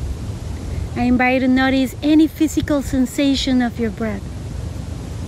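A woman speaks calmly and slowly nearby.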